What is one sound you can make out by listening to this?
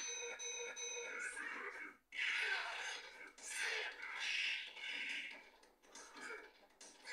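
Fighting game music plays through a television speaker.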